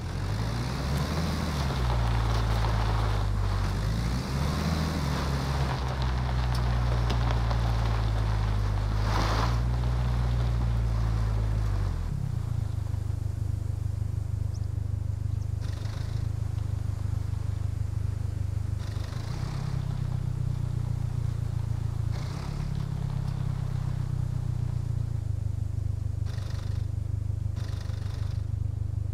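Tyres crunch over gravel and dirt.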